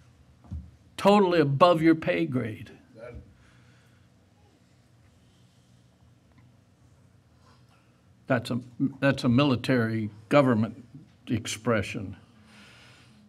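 An elderly man preaches with emphasis through a microphone, pausing between phrases.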